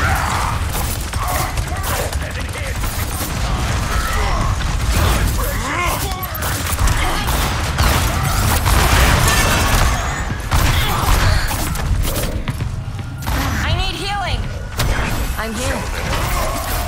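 Weapons fire and blasts crackle in rapid bursts in a video game battle.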